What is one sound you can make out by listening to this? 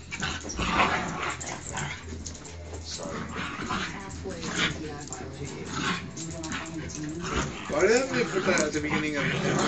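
Dogs growl and scuffle playfully close by.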